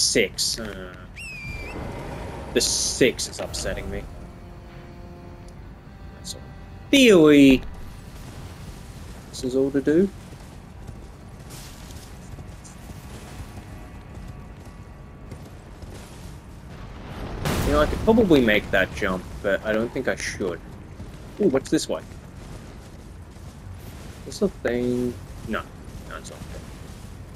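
Footsteps crunch over grass and stone.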